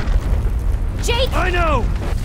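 A young woman shouts urgently.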